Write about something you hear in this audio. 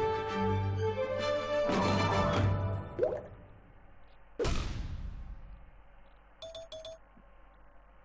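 Cheerful game jingles chime.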